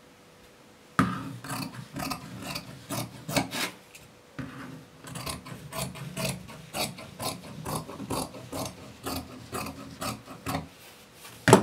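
Scissors snip and cut through fabric.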